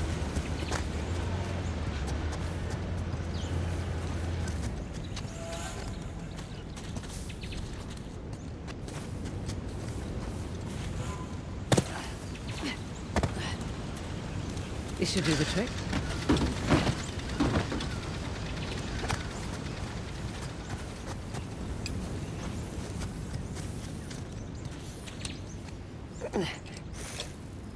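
Footsteps walk and climb over stone and grass.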